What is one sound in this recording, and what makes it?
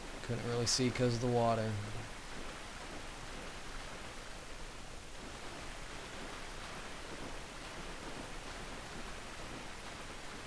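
Water splashes steadily with wading steps.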